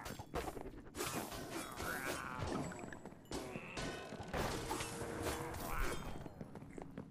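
Fiery blasts burst loudly.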